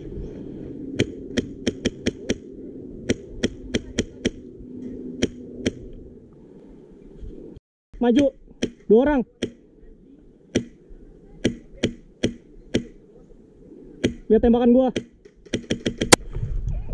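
An airsoft gun fires sharp, rapid shots in bursts.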